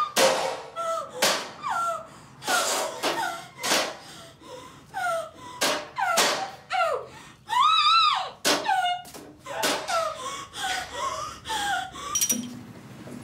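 A woman moans and whimpers, muffled by a gag.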